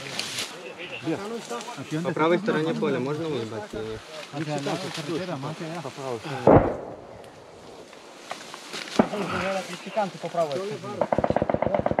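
Men talk in low, hurried voices nearby.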